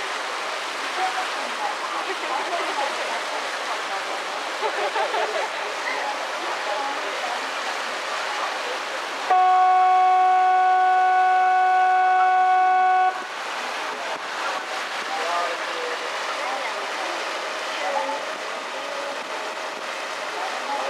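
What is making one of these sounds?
Water rushes and splashes past a moving boat, outdoors in wind.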